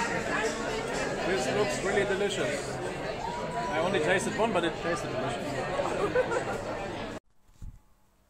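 A man talks close to the microphone over the crowd.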